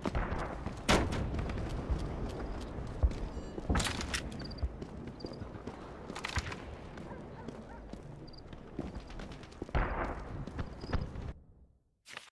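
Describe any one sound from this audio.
Footsteps thud steadily on stone pavement.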